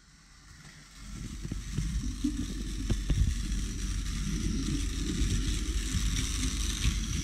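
A small toy train motor hums low and steady.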